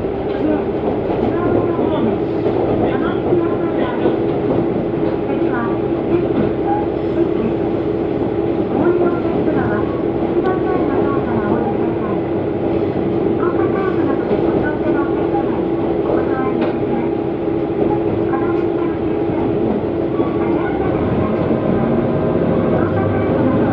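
Train wheels rumble on rails, heard from inside the carriage.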